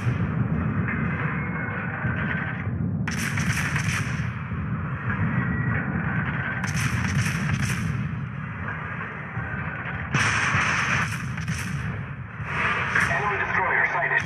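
Shells explode and splash into the water.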